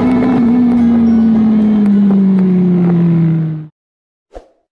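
A motorcycle engine drones loudly and its pitch slowly falls.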